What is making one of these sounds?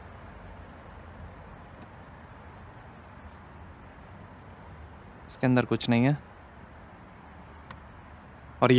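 A key turns and clicks in a small latch.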